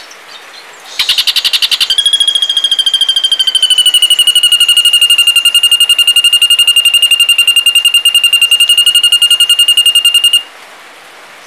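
A bird sings a long, harsh buzzing trill.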